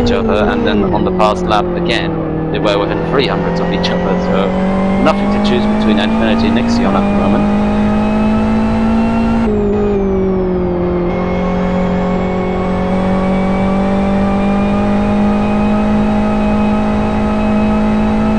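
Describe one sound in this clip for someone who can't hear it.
A racing car engine drones steadily, its pitch rising and falling with gear changes.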